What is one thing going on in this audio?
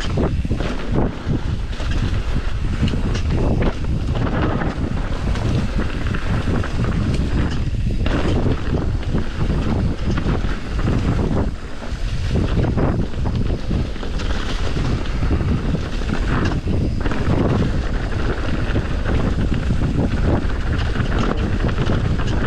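Wind rumbles loudly and close up.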